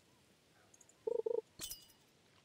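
A bell chimes twice as a fish bites.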